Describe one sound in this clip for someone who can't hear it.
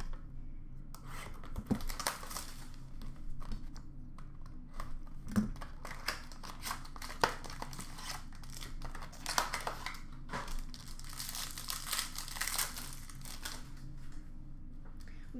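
Plastic wrapping crinkles and tears as a pack is opened by hand.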